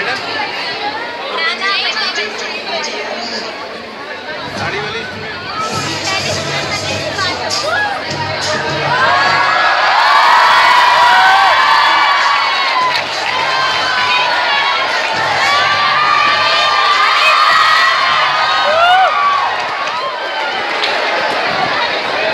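A large crowd of young people cheers and screams loudly in an echoing hall.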